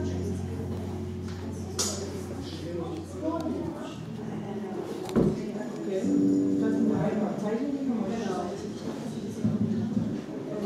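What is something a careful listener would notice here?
Drums are played.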